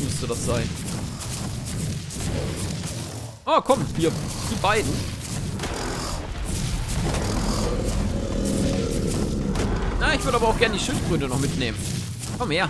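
A large beast stomps with heavy thudding footsteps.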